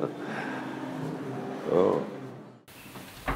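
A middle-aged man laughs softly close by.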